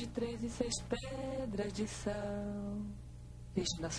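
A young woman sings slowly nearby.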